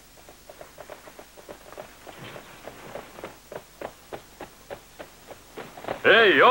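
Horse hooves clop on dirt as a horse trots off.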